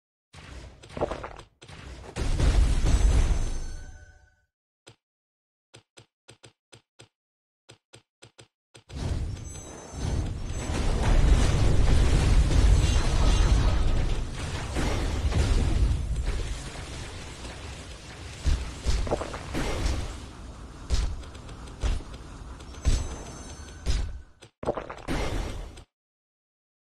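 Magic blasts and explosions boom and crackle in a fierce battle.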